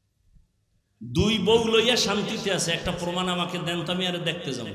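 A man speaks forcefully into a microphone, his voice amplified and ringing.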